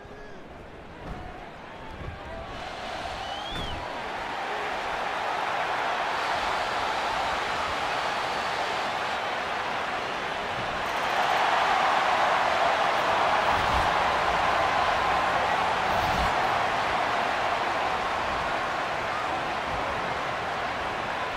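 A large crowd cheers and roars, swelling louder.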